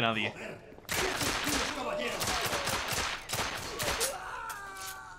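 A pistol fires several quick shots in an echoing space.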